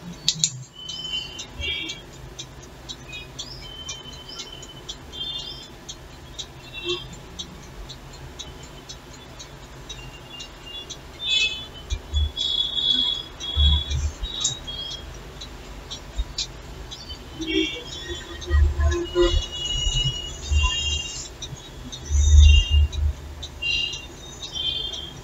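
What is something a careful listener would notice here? A pen scratches on paper close by.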